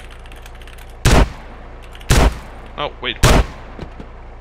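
Gunshots ring out loudly several times.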